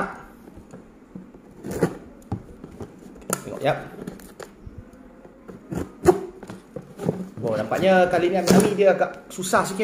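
Scissors snip and scrape against cardboard.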